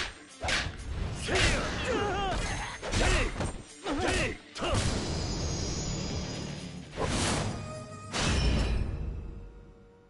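Punches land with heavy thuds in a fight.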